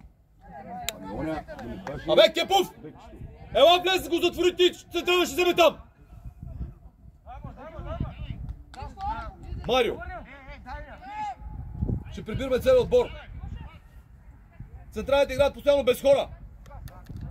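Young men shout loudly to each other outdoors.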